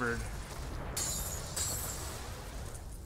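A game plays a sweeping magical whoosh effect.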